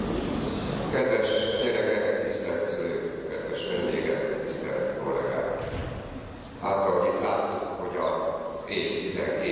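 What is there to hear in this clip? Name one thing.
An elderly man speaks calmly into a microphone over a loudspeaker in a large echoing hall.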